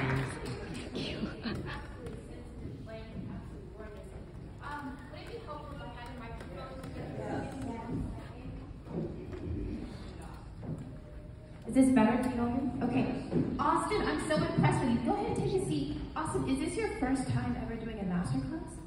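A woman speaks over a loudspeaker in a large echoing room.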